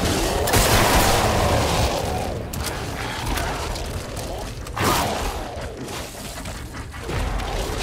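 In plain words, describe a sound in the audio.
A creature shrieks and growls.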